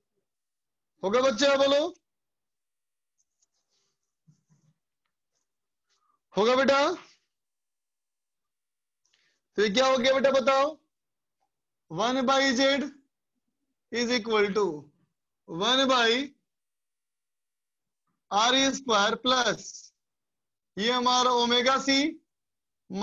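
A man speaks calmly in short phrases with pauses, close by.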